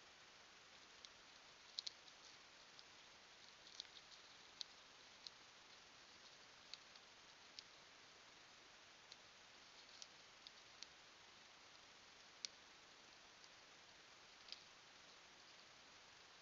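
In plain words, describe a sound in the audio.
A deer crops grass.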